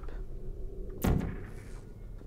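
A gun fires a sharp, zapping shot.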